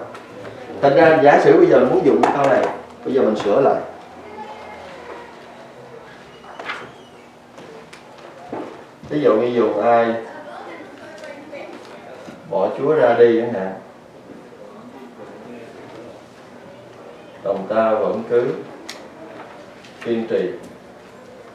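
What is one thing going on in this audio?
A man speaks calmly and clearly, close by, in short phrases with pauses.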